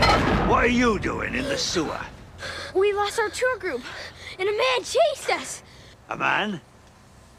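A young boy speaks.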